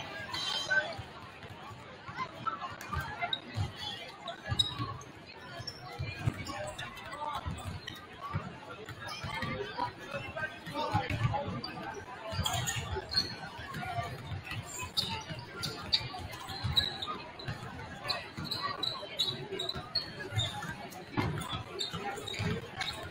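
Basketballs bounce on a wooden court in a large echoing gym.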